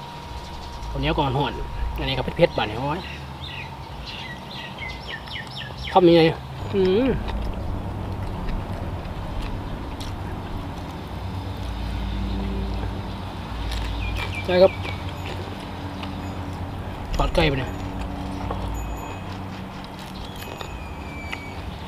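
A man eats noisily, chewing and smacking his lips close by.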